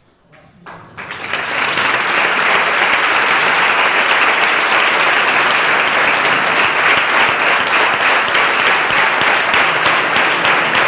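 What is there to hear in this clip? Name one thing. A crowd applauds loudly in a large room.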